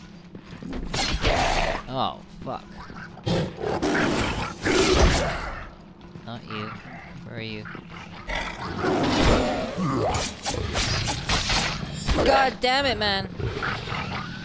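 A monstrous creature roars and screeches.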